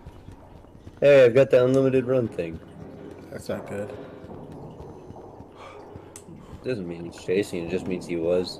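Footsteps run across a hard concrete floor in a large echoing space.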